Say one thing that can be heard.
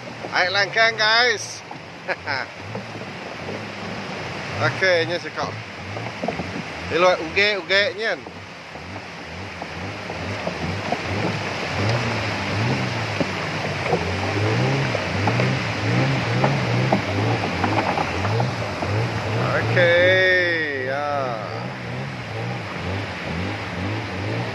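Rushing river water splashes along the hull of a boat.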